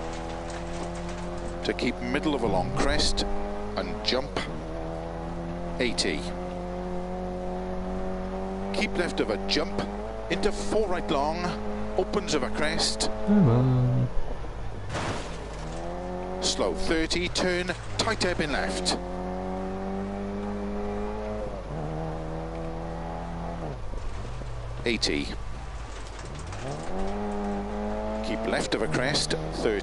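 A small car engine revs and whines, shifting gears.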